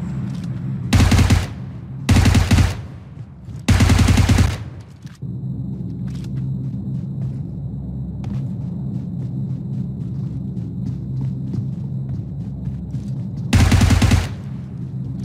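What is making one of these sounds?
Automatic gunfire rattles in loud, short bursts.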